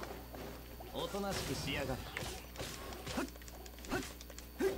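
Magical attack effects whoosh, crackle and burst.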